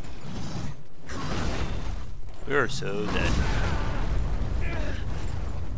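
Rocks crash and tumble with a heavy rumble.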